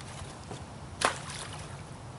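An object splashes into water.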